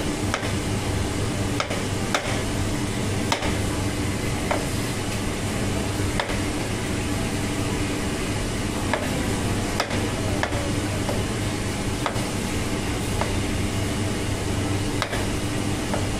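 A knife chops through tomatoes on a cutting board.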